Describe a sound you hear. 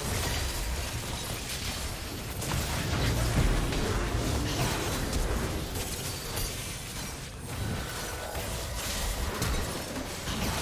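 Spell blasts and explosions crackle and boom in a game battle.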